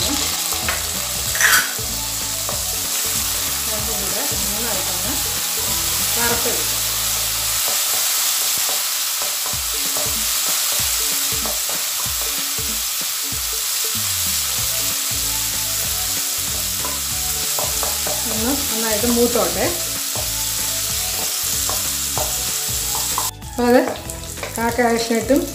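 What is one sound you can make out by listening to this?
A spatula scrapes and stirs inside a metal pan.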